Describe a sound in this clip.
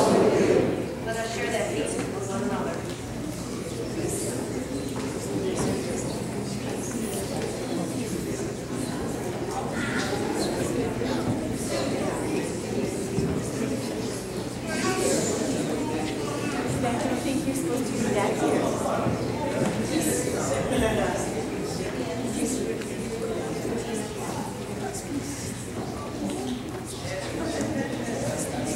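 A crowd of men and women murmur and chat, greeting one another, in an echoing hall.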